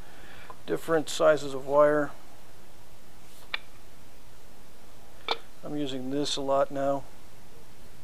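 Plastic rods clack lightly against each other.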